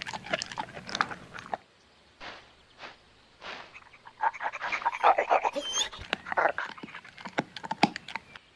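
A dog laps and chomps food from a metal bowl.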